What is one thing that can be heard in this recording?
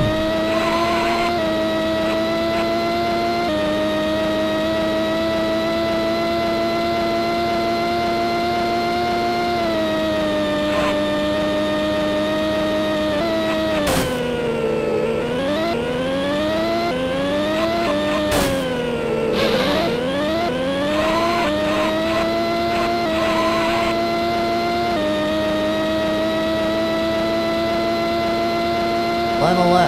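A racing car's engine whines steadily at high speed, drops low while braking and climbs again as the car speeds up.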